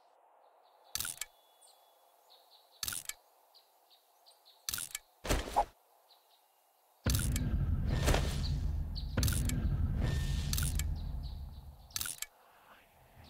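Game menu clicks sound as items are moved between slots.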